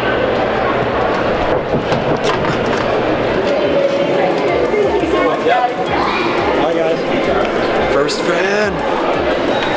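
A crowd murmurs in a busy echoing hall.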